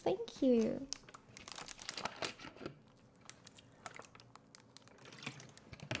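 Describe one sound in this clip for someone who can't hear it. A plastic bottle crinkles.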